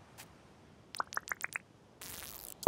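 A fishing line whirs out as it is cast.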